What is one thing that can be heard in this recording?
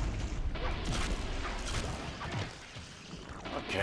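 A sword slashes and strikes a foe with sharp hits.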